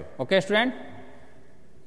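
A man speaks briefly and clearly into a microphone.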